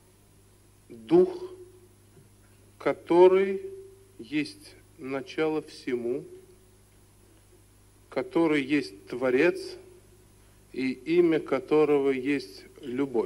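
A man speaks into a microphone in measured phrases with pauses.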